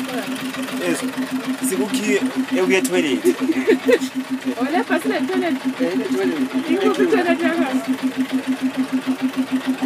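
Young women and men chatter and laugh close by in a crowd.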